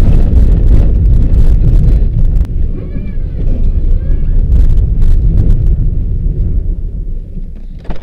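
Tyres crunch and rumble over packed snow.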